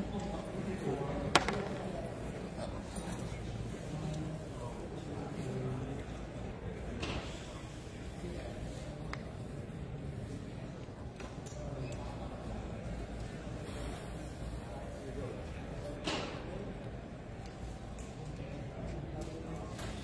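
Several people talk in a murmur around a busy room.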